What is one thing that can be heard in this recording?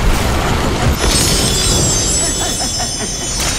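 A magic burst crackles and hisses with a bright shimmer.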